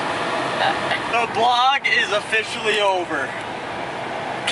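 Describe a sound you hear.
A young man talks loudly nearby.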